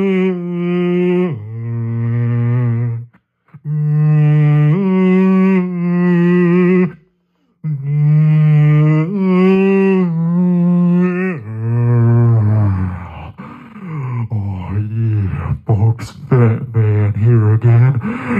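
A man sings loudly into a microphone, heard through a loudspeaker, in long held notes.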